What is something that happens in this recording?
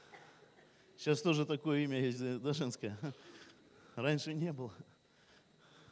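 An audience laughs.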